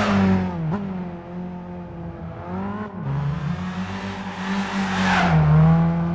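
A car engine revs hard, its pitch rising and dropping with each gear change.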